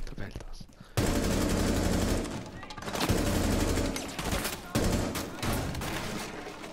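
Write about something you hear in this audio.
Bullets thud into a brick wall.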